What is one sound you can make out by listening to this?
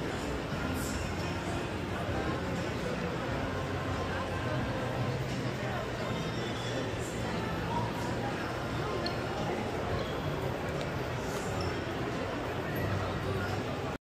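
Footsteps tap on a hard floor nearby.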